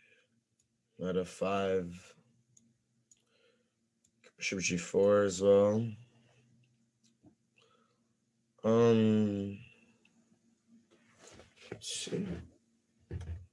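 A young man speaks in short bursts close to a microphone, with pauses between.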